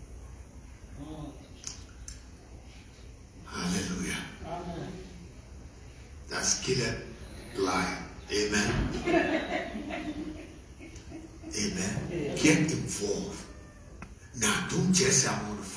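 A man preaches with animation through a headset microphone.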